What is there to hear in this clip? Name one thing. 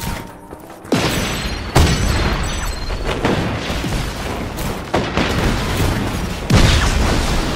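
Loud explosions boom and rumble.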